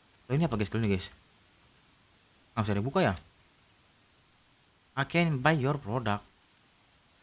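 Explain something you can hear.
A young man speaks into a microphone with animation, in short bursts.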